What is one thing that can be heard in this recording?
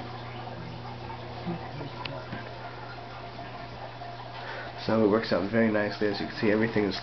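Fluorescent lamps hum steadily and low.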